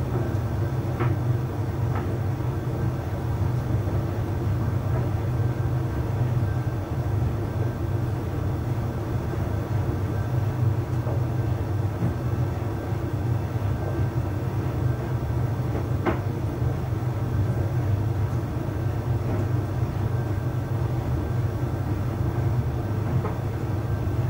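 Laundry tumbles and thumps softly inside a dryer drum.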